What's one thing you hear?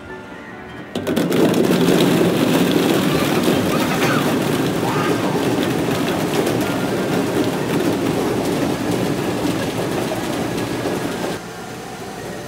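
Plastic balls rain down and clatter loudly.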